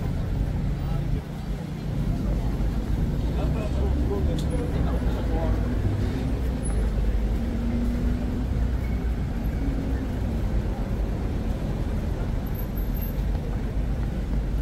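Footsteps tap on pavement close by.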